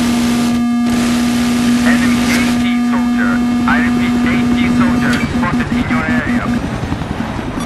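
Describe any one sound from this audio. A helicopter engine whirs steadily.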